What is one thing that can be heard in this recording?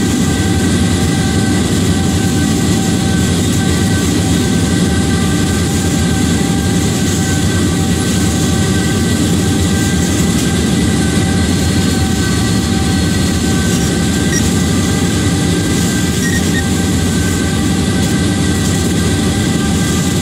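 Train wheels roll and clatter along the rails.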